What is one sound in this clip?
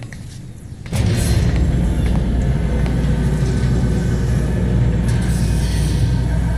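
An airship's engines roar with a deep, steady rumble.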